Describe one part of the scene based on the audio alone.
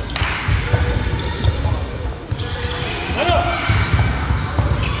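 Children shout and call out to one another.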